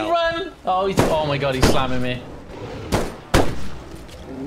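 Rifle shots crack sharply, with a short echo.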